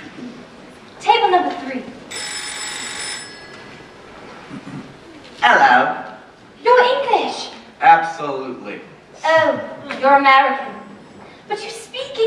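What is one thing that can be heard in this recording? A woman sings on a stage in a large echoing hall, heard from the audience.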